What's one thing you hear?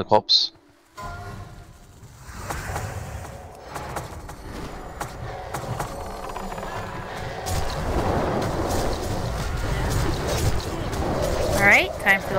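Spells and weapons clash and crackle in a busy battle.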